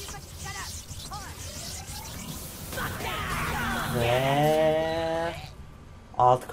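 Electricity crackles and zaps in a sharp burst.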